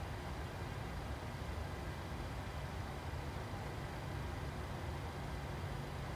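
Jet engines hum and rumble steadily.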